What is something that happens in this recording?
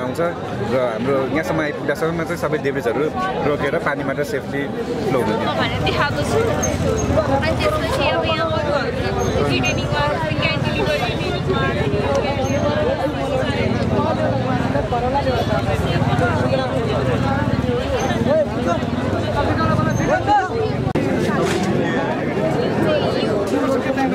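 A crowd chatters outdoors all around.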